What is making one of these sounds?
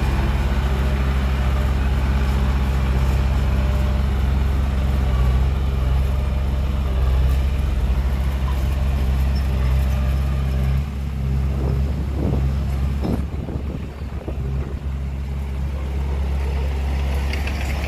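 A truck engine rumbles loudly, straining as the truck crawls through soft dirt.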